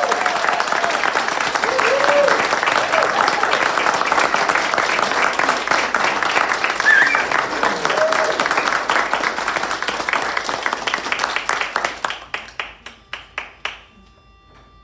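An audience claps loudly and cheers in a room.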